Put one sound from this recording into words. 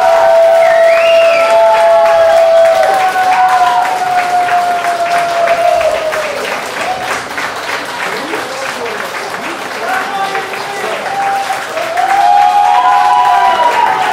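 A band plays live music through loudspeakers.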